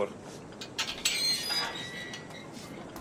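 A metal gate creaks as it swings open.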